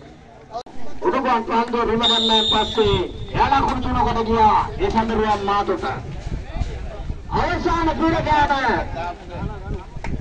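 Young men shout and chant loudly close by, outdoors.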